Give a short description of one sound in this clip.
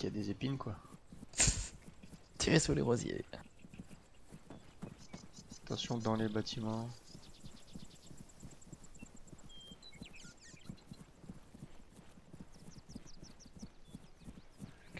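Footsteps swish through grass at a steady walk.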